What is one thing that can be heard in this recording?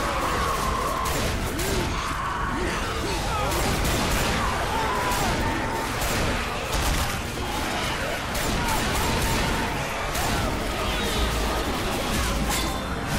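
Zombies snarl and shriek nearby.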